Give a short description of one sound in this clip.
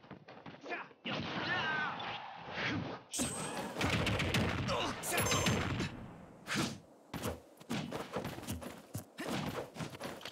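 Punches and kicks land with sharp thuds and whooshes.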